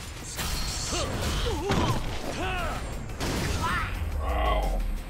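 A young man groans in pain.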